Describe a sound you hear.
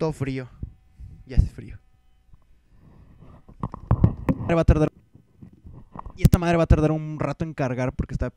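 A young man talks on a phone nearby.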